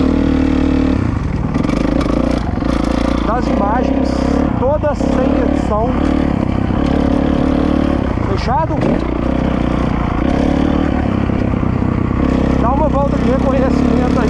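A dirt bike engine roars and revs up and down close by.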